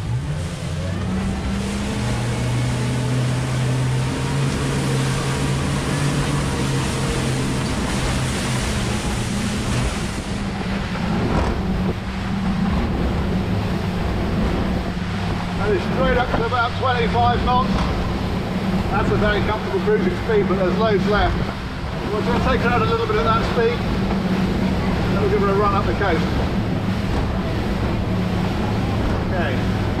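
Outboard engines roar steadily.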